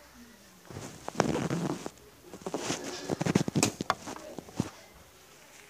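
Fabric rubs and rustles against a phone microphone.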